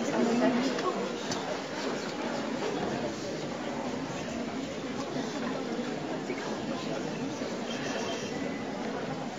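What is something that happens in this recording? A crowd of young people murmurs and chatters in a large hall.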